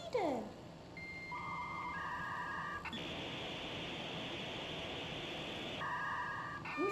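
An old television gives out steady electronic beeping tones.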